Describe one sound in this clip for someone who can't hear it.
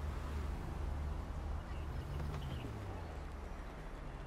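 A car door swings open.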